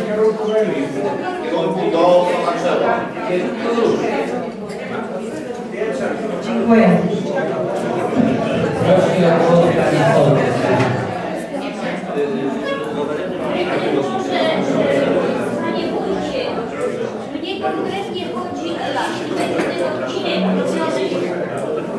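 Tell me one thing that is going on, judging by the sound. A crowd of people murmurs and chatters.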